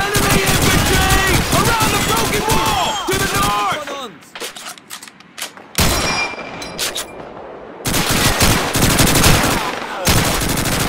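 Rifles and machine guns fire in rapid bursts nearby.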